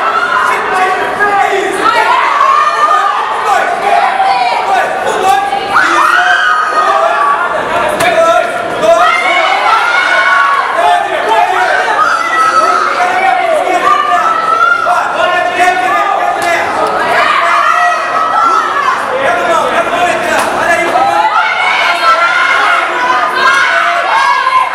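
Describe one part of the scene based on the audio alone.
A crowd shouts and cheers nearby.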